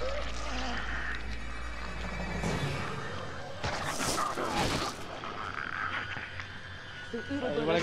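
Flesh squelches and tears as tentacles burst out.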